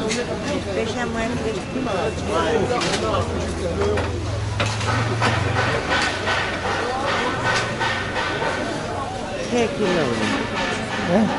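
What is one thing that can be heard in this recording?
A crowd of people chatters nearby, outdoors.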